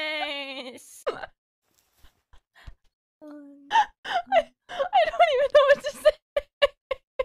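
A young woman speaks with animation into a close microphone.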